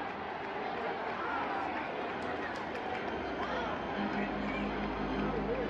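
A large crowd murmurs and chatters throughout an open stadium.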